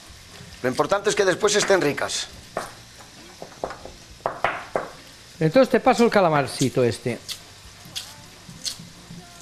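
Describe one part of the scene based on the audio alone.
A knife taps against a cutting board while chopping.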